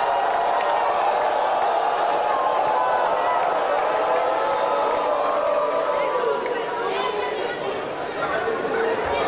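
A big band plays music live outdoors.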